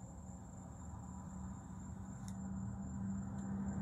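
A lighter clicks as it is flicked.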